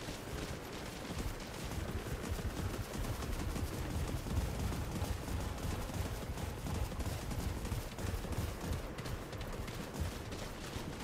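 Armoured footsteps crunch along a dirt path.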